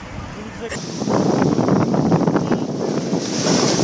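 A wave breaks and rushes onto the shore.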